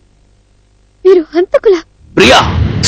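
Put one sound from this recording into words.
A man speaks forcefully and loudly, close by.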